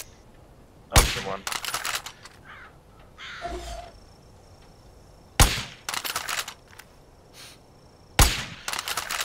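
A scoped rifle fires sharp shots.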